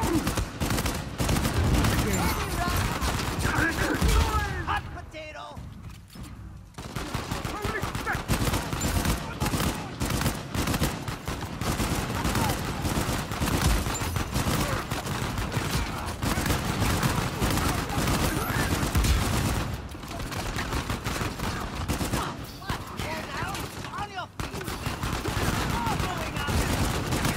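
Rapid gunfire cracks and pops repeatedly.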